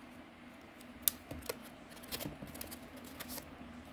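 A folding knife taps and clicks softly as it is pressed into a foam slot.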